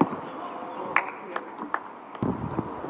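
A tennis ball bounces on the court a few times.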